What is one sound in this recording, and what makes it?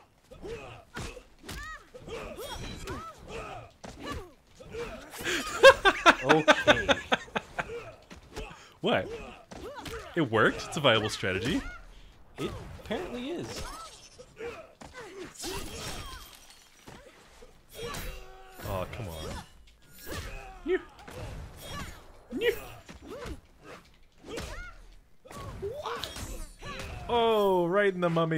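Fighters grunt and cry out with effort.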